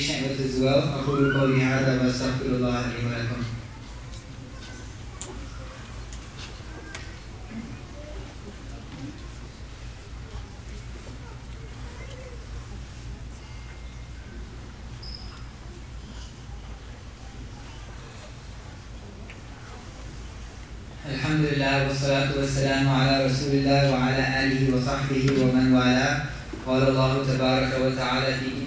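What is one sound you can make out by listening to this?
A young man speaks steadily into a microphone, heard through a loudspeaker in a room.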